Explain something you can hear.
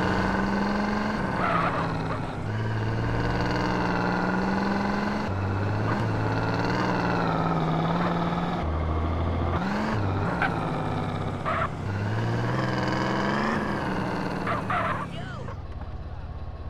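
A car engine drones steadily as a car drives.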